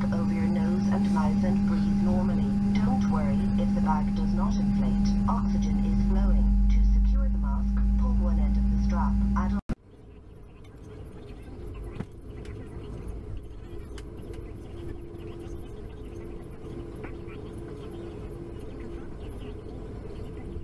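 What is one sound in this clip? An aircraft engine hums steadily, heard from inside the cabin.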